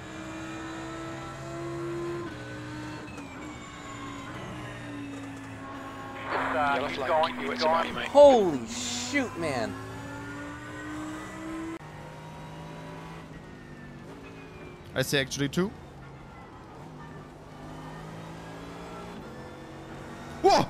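A racing car engine drones steadily, its pitch shifting with gear changes.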